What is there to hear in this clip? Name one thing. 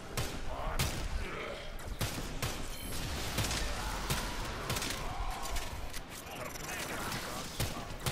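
Gunshots fire in sharp, irregular bursts.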